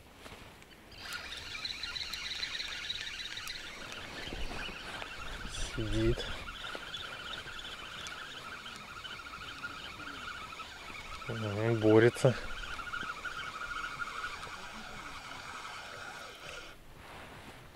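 A fishing reel whirs steadily as its handle is turned.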